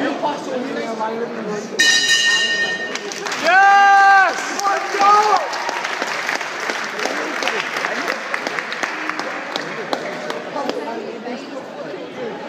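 A large crowd chatters and calls out in an echoing hall.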